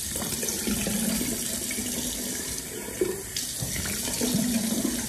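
A person splashes water onto their face.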